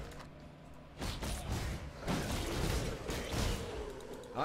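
Game spell effects whoosh and crackle in bursts.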